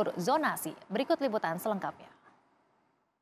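A young woman speaks calmly into a microphone, as if reading news.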